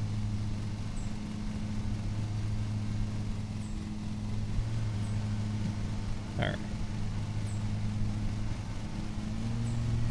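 A lawn mower engine drones steadily.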